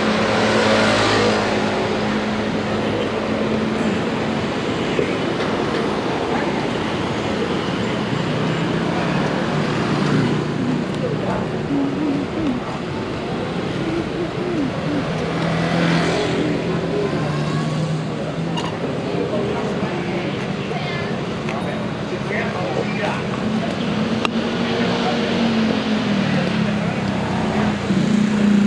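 Steady street traffic hums outdoors.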